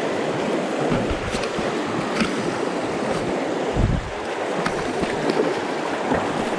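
Feet splash while wading through shallow water.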